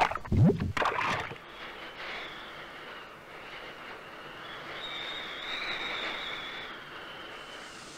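Shallow water ripples and trickles over rock.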